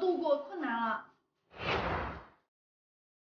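A young woman speaks brightly up close.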